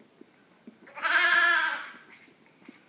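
A lamb bleats loudly close by.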